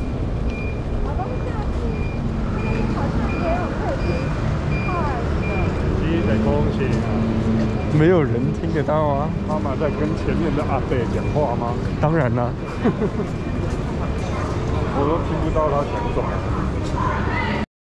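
Men and women talk nearby in a passing crowd.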